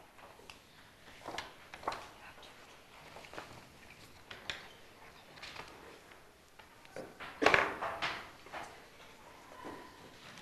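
Children talk quietly around a table.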